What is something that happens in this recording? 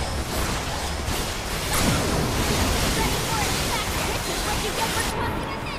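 Magic blasts crackle and burst in rapid bursts.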